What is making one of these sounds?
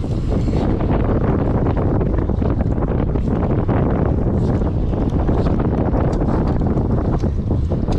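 Wind rushes loudly outdoors.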